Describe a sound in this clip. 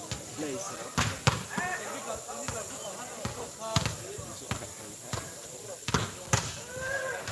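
A volleyball is hit with sharp slaps outdoors.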